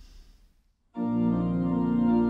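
A pipe organ plays a steady chord.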